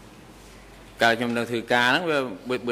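A middle-aged man speaks calmly into a microphone.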